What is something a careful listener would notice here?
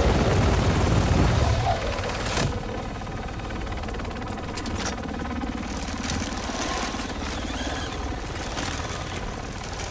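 A helicopter's rotor thumps and roars loudly overhead.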